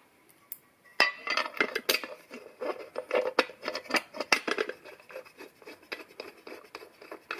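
Metal parts clink and scrape together as a cover is fitted by hand.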